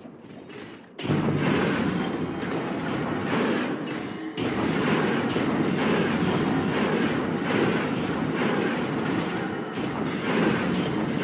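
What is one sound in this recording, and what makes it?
Magic blasts crackle and burst in a fight.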